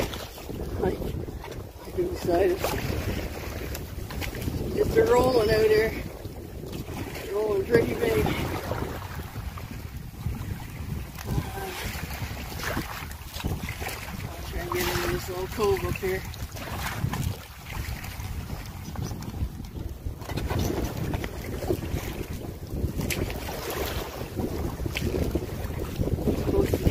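Waves splash and slap against a boat's hull.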